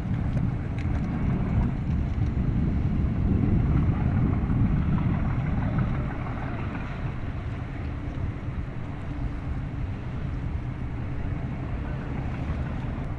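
A boat's engine rumbles steadily nearby.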